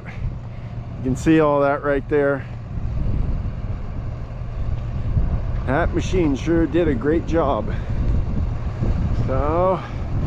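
An excavator's diesel engine rumbles steadily close by, outdoors.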